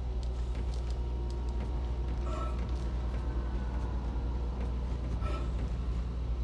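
Heavy metallic footsteps clank on a hard floor.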